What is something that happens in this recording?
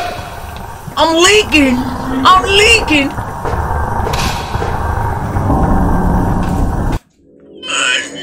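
A young man exclaims loudly and with animation into a close microphone.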